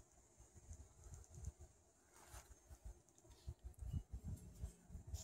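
Wind buffets and rumbles in gusts outdoors.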